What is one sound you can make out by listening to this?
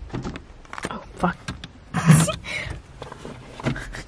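A car door opens with a thud.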